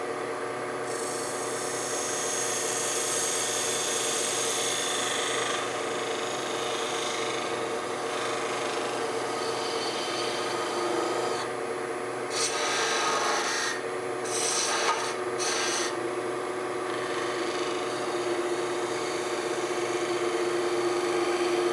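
A gouge scrapes and hisses against spinning wood on a lathe.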